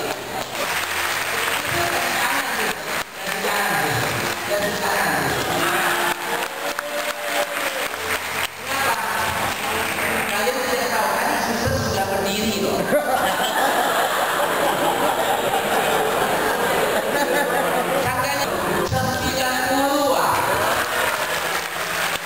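A crowd chatters and laughs.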